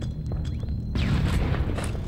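An explosion booms in a video game.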